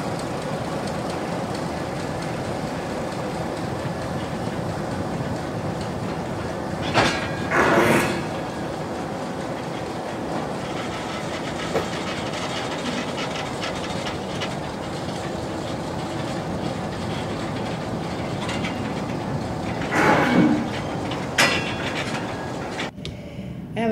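Loose ore pours and rumbles into a railway wagon.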